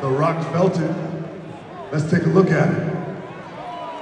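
A man speaks forcefully through a loudspeaker in a large echoing arena.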